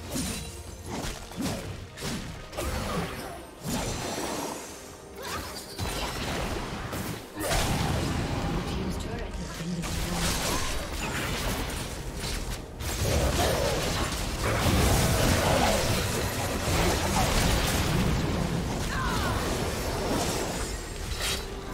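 Magic blasts and clashing weapons crash in a fast battle.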